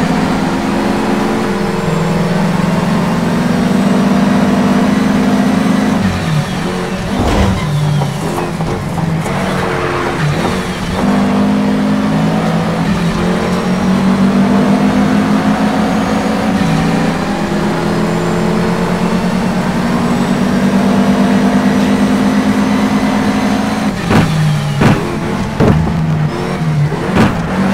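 A racing car engine roars and revs up through the gears, dropping in pitch as it brakes for corners.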